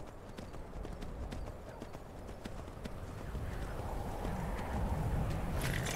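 Horse hooves clop slowly on stone.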